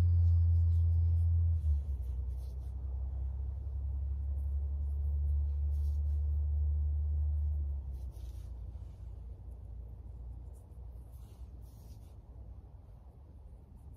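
Fingers softly press seeds into loose soil.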